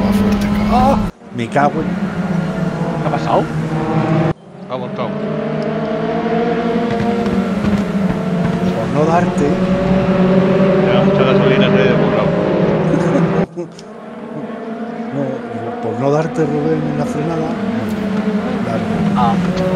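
Several racing car engines drone and whine at high revs.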